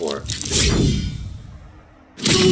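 A sword clangs loudly against a shield.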